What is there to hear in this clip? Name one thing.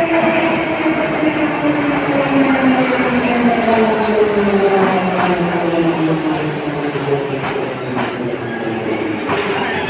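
A subway train pulls into the station with a loud roar, its whining motor falling in pitch as it slows.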